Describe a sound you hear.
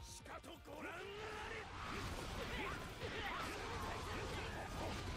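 Swords slash and clang rapidly in a noisy battle.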